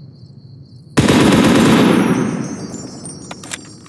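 A rifle fires a rapid burst that echoes and fades.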